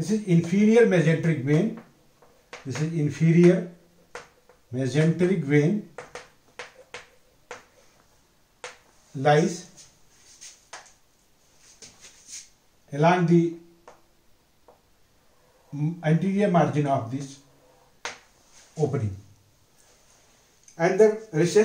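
A middle-aged man speaks calmly close by, explaining in bursts with pauses.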